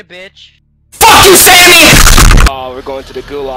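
A young man screams loudly close by.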